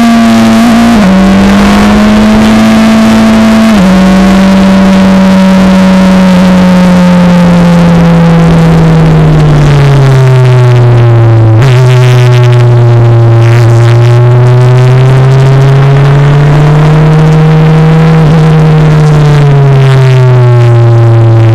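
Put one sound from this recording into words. The Formula Renault engine's pitch jumps as the driver shifts gears and rises and falls through the corners.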